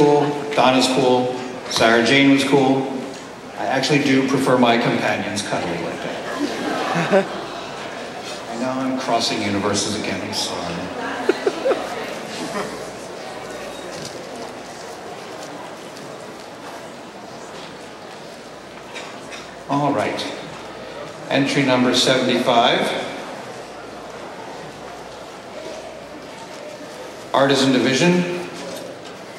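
A man speaks theatrically into a microphone, heard through loudspeakers in a large hall, with long pauses.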